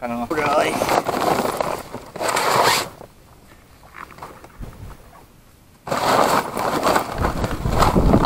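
A man speaks close by with animation.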